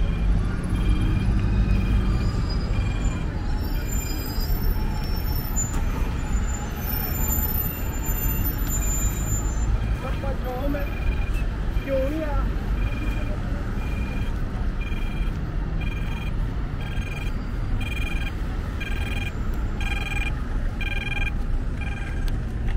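City traffic rumbles steadily nearby outdoors.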